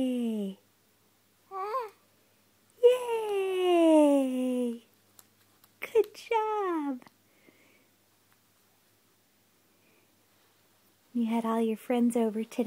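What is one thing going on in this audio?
A baby babbles and squeals in high, gliding coos close by.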